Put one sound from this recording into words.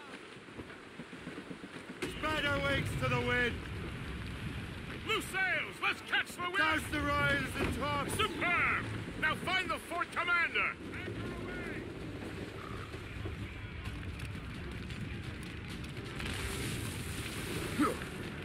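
Water rushes and splashes against a wooden ship's hull.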